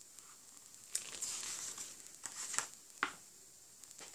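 A book page rustles as it is turned.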